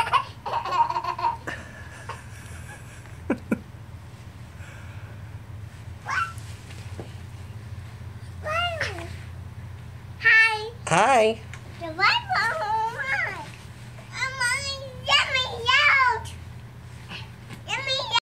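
A young child squeals and babbles playfully close by.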